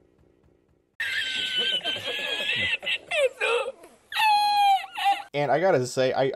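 A middle-aged man laughs loudly and heartily.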